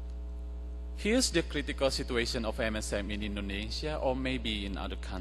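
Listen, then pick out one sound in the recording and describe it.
A man speaks calmly into a microphone, heard through loudspeakers in a large hall.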